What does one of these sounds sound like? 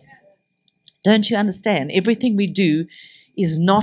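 A woman speaks with animation into a microphone, with a slight echo in the room.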